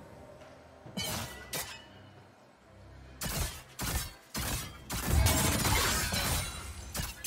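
Game characters clash with bursts of spell and sword effects.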